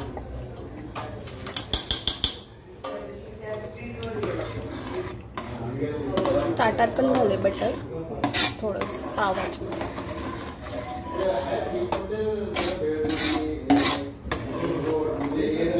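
A metal ladle scrapes and clinks against a metal pot.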